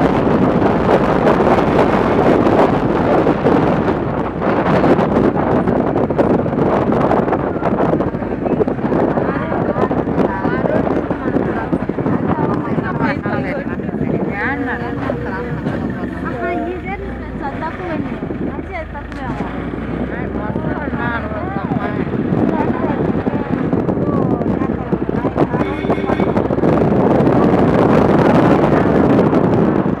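Strong wind buffets the microphone outdoors, rising and falling in gusts.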